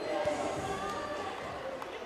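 A young woman shouts with excitement.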